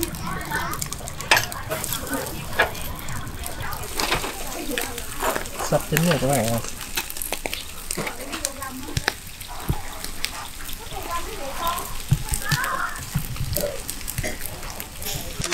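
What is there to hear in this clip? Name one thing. Fish sizzles and crackles over a charcoal fire.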